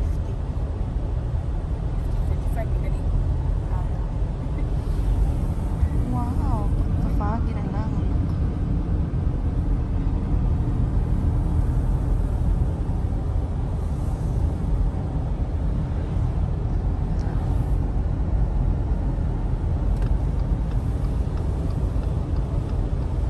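A car rumbles steadily along a wet road, heard from inside.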